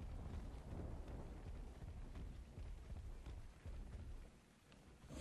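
Heavy footsteps thud steadily as a large creature walks.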